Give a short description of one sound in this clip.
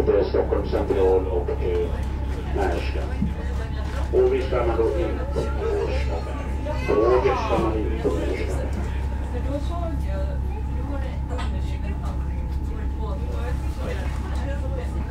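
A train's engine hums low and steadily.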